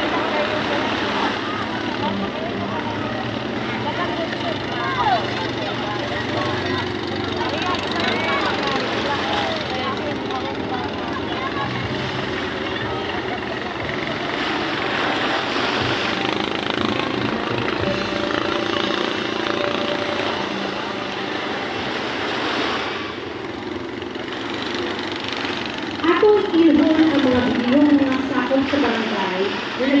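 Several adults chat and call out nearby outdoors.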